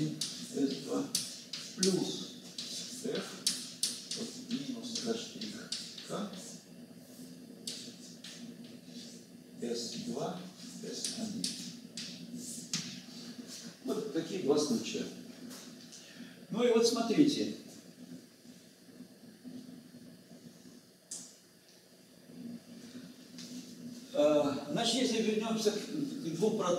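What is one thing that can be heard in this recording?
An elderly man lectures calmly at a distance.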